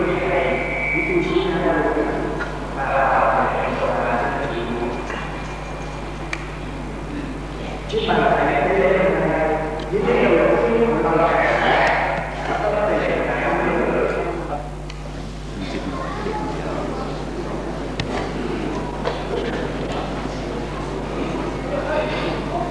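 A young man chants slowly into a microphone, heard through loudspeakers in an echoing hall.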